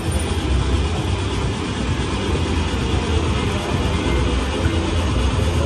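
A slot machine plays a spinning jingle as its reels turn.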